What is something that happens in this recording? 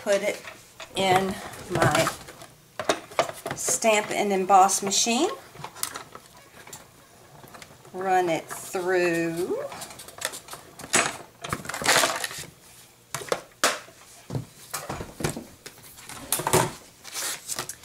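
Plastic plates knock and clatter against a machine.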